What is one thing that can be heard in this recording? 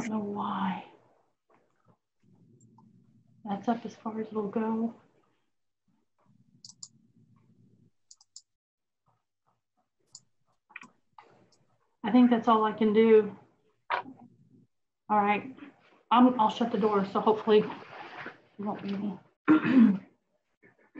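A woman speaks through an online call, in short bursts with pauses.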